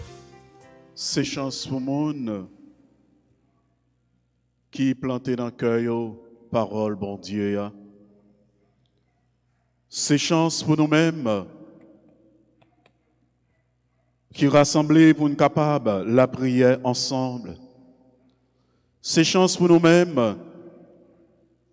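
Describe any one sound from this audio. A man reads aloud slowly and clearly into a microphone, in a reverberant room.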